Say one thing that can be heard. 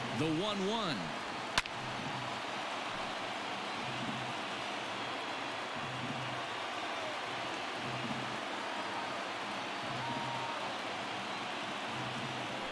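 A crowd murmurs steadily in a large open stadium.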